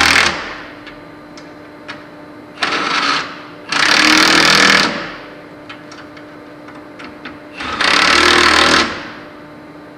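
A handheld power tool whirs loudly in short bursts.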